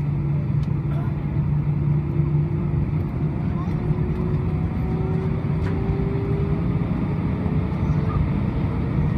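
The engine whine slowly rises in pitch.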